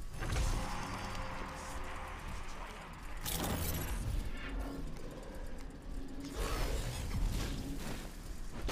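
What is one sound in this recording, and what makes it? Magic blasts and hits sound from a video game.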